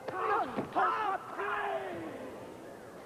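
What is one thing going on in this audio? Men shout sharply in short bursts.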